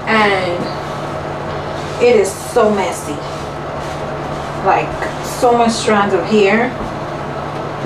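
A woman talks nearby in a casual voice.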